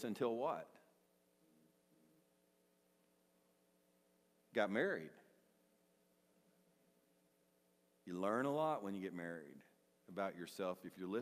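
An older man speaks calmly through a microphone, with pauses between phrases.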